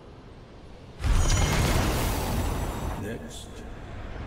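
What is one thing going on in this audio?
A magical burst whooshes and rumbles.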